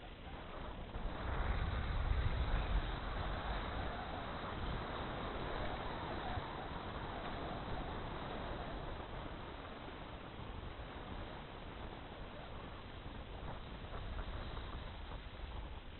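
A snowboard scrapes and hisses over packed snow close by.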